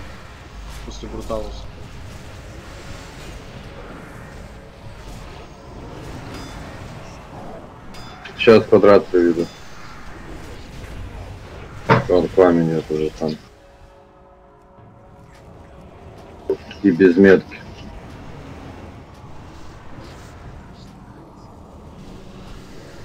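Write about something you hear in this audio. Magic spells and weapons clash in a busy battle.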